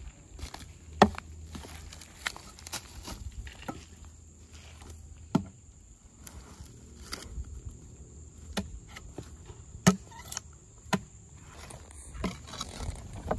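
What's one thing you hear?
Heavy wooden logs thud and clunk against each other.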